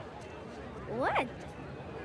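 A young girl asks a short question.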